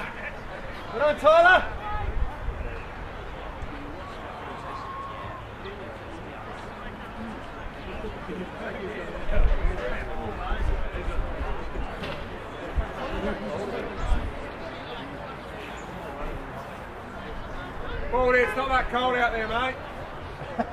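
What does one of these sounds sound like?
Young men shout to one another across an open field.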